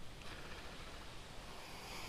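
A fishing reel whirs as the line is wound in.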